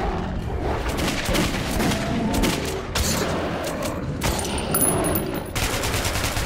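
A monster snarls and growls.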